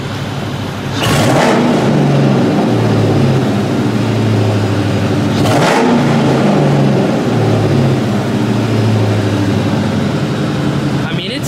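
Music with deep bass plays loudly from car speakers.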